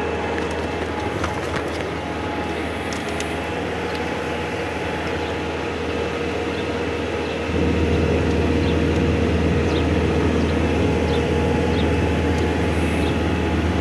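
Tyres rumble over rough, patched pavement.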